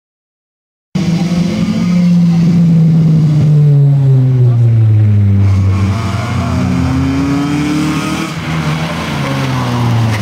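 A car engine revs loudly, its pitch falling and rising as it drives close by.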